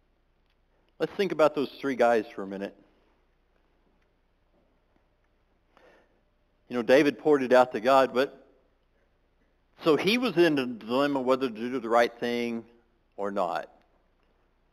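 A man speaks into a microphone in short bursts with long pauses.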